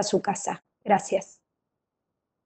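A middle-aged woman speaks briefly over an online call.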